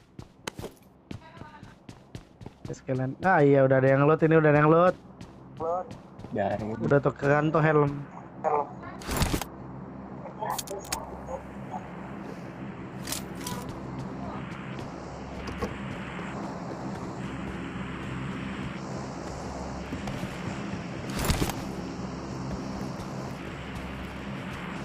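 Footsteps run quickly over hard ground and grass.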